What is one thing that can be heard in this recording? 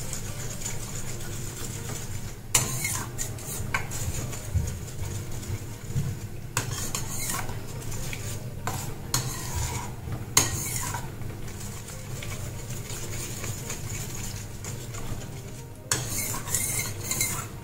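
A thick sauce bubbles and simmers in a pan.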